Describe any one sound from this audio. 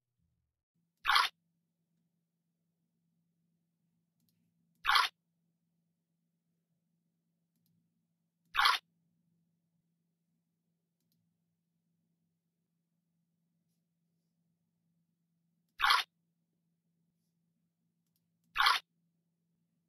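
Water pours briefly into a glass flask, several times.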